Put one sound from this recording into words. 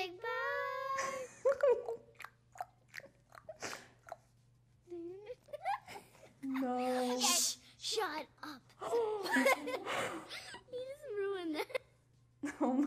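Young girls talk and laugh excitedly through an online call.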